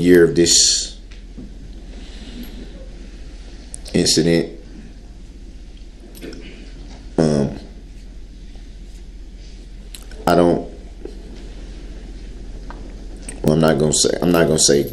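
A man speaks haltingly into a microphone, in short bursts with long pauses.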